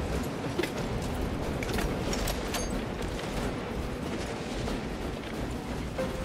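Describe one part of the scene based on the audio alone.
Heavy armoured footsteps clank on metal flooring.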